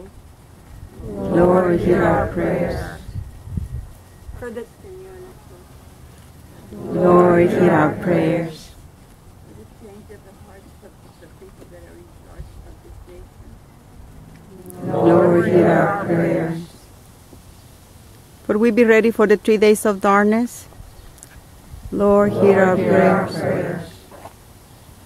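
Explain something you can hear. A man chants a prayer aloud outdoors, in short phrases with pauses between them.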